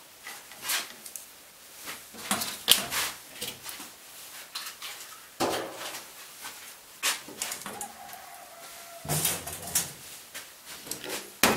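Chopsticks clink and tap against a small bowl.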